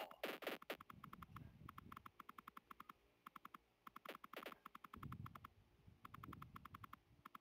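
Arrows fire in quick rapid bursts.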